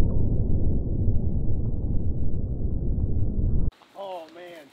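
A deep, rumbling roar from an explosion fills the air.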